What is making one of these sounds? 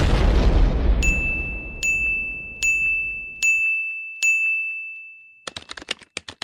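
Bright chimes ding one after another.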